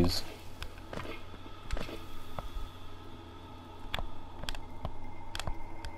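Faint clicks sound as a map opens.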